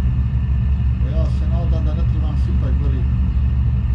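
A man speaks briefly and casually into a microphone.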